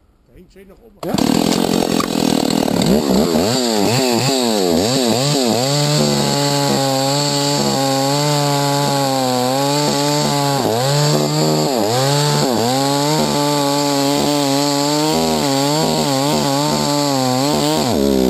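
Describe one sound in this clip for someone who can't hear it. A chainsaw engine roars loudly and steadily while cutting into a tree trunk.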